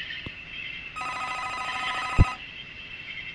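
A phone rings briefly with a warbling electronic tone.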